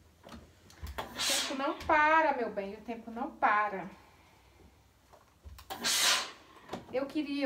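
A steam iron hisses in short bursts.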